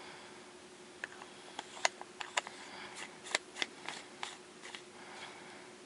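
Metal lens parts click and scrape as they are screwed together by hand.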